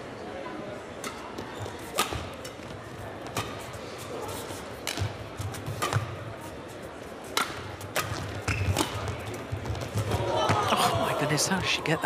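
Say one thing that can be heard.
Rackets smack a shuttlecock back and forth in a fast rally.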